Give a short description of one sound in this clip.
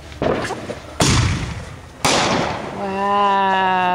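A firework bangs loudly overhead and crackles as it fades.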